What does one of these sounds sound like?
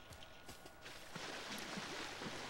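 Water splashes softly as someone wades.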